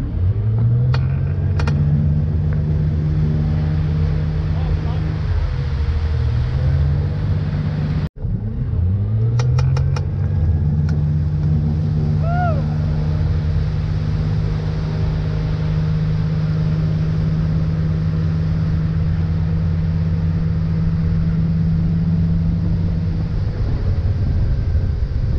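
Water rushes and splashes in the boat's wake.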